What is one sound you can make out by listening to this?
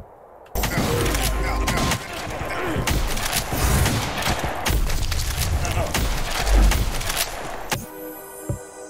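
Rapid shots and blasts crackle from a video game.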